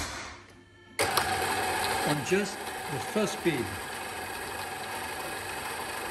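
An electric stand mixer whirs steadily.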